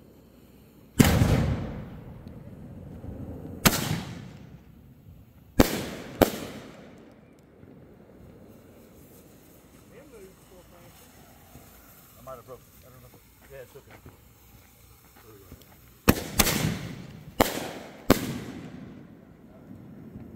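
Aerial firework shells burst with loud booms that echo away.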